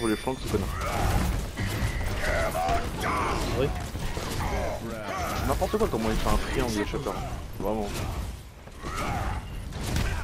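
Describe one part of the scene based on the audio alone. Gunfire and blasts clash rapidly in a fast fight.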